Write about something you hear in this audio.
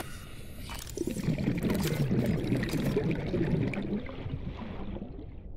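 A small underwater scooter motor whirs.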